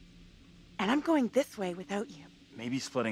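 A young man speaks quietly and close.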